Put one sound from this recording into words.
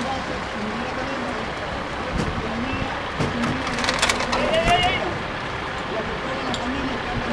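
A crowd of men and women talks outdoors in the distance.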